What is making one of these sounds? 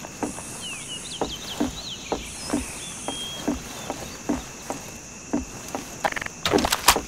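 Footsteps thud on wooden stairs and boards.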